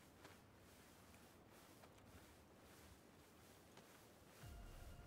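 Grass rustles softly as a soldier crawls through it.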